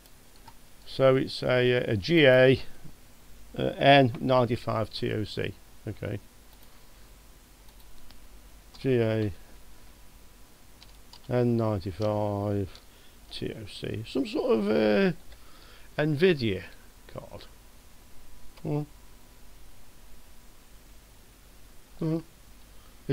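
A middle-aged man talks calmly into a close microphone, in short bursts.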